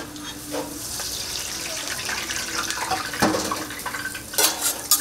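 Liquid batter sizzles as it is poured onto a hot griddle.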